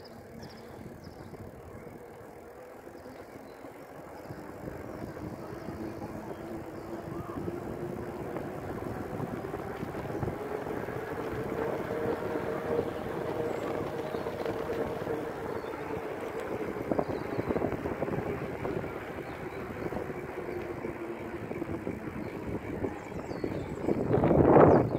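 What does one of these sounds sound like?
Bicycle tyres roll steadily over asphalt.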